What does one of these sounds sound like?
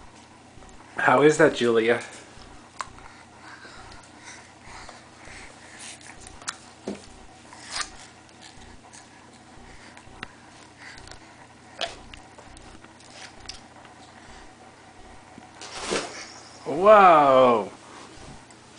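A baby gurgles and squeals loudly close by.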